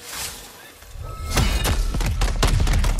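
A magical weapon crackles and fizzes loudly.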